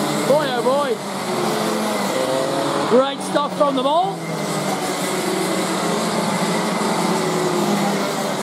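Go-kart engines buzz and whine steadily.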